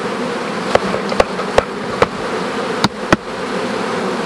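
A hive tool knocks and scrapes against wooden frames.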